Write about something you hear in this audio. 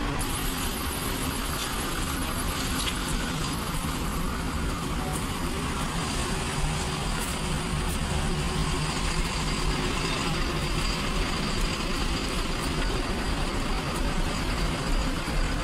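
Footsteps scuff along a paved path outdoors.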